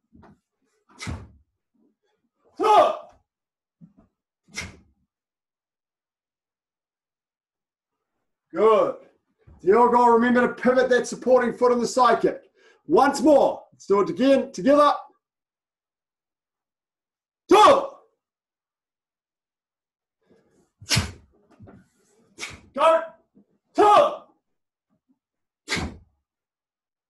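A man lets out short, sharp shouts as he strikes.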